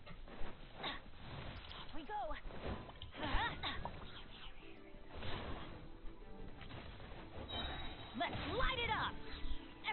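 Magical attacks whoosh and crackle in a fight.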